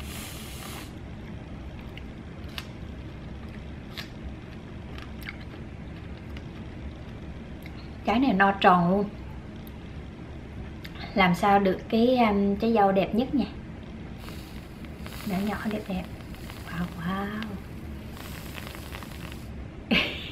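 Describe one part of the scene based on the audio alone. A can of whipped cream hisses as it sprays.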